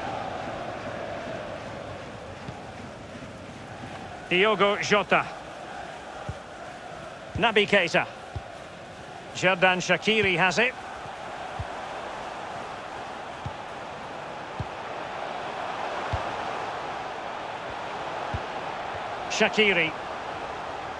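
A large stadium crowd murmurs and roars steadily in the distance.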